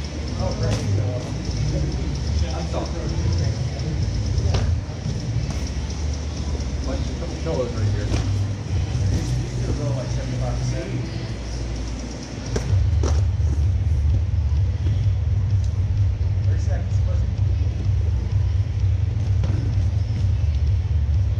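Punches and kicks smack against pads in a large echoing room.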